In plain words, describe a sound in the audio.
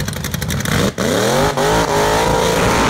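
A hot rod engine revs up sharply and roars.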